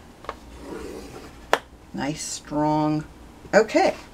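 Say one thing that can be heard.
A paper trimmer blade slides along and slices through card.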